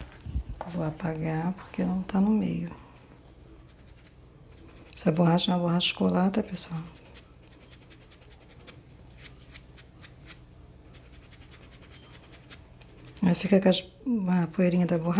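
Fingers rub and press soft foam.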